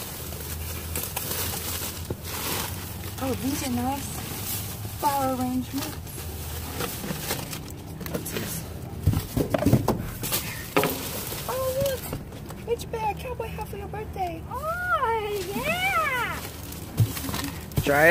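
Plastic sheeting crinkles and rustles as it is handled.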